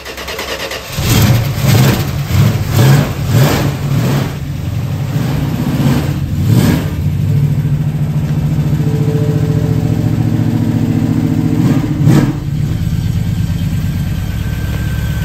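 A car engine rumbles and revs in short bursts, then idles steadily.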